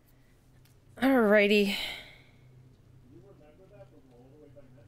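A young woman talks softly into a close microphone.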